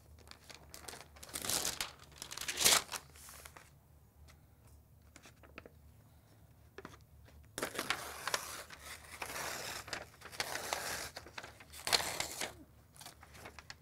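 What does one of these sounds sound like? Large sheets of paper rustle and crinkle as they are handled.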